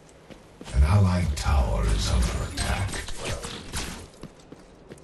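A laser weapon fires with loud buzzing blasts.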